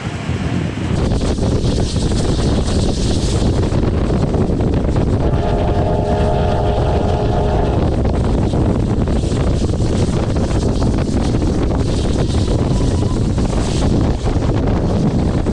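Wind rushes loudly past a moving train.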